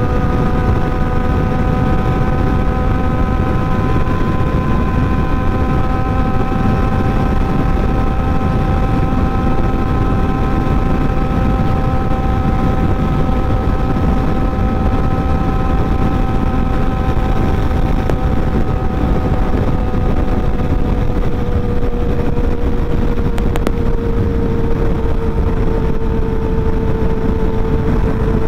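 A motorcycle engine hums steadily at cruising speed, dipping slightly in pitch near the end.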